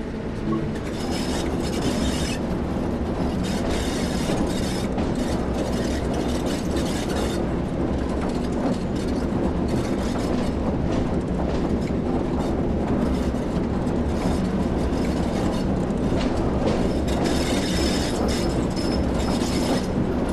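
Train wheels clatter and squeal over rail joints.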